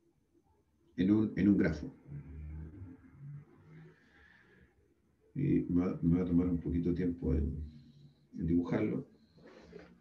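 A man speaks calmly in bursts over an online call.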